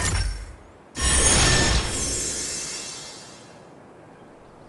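A magical whooshing burst swells and slowly fades.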